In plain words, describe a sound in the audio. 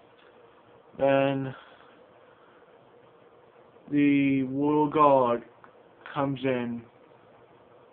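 A young man speaks close to the microphone in short bursts.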